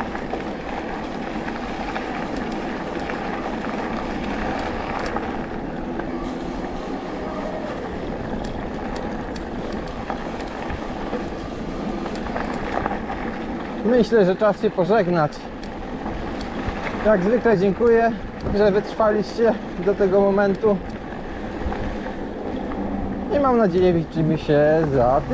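Bicycle tyres roll steadily over a dirt trail.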